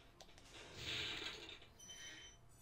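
A soft puff of air whooshes.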